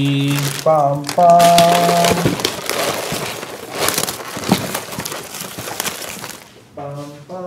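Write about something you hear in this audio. Styrofoam packing squeaks and rustles as it is pulled apart.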